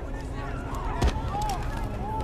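A gunshot cracks sharply.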